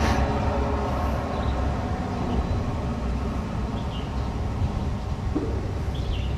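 A diesel train engine rumbles steadily as the train rolls slowly along.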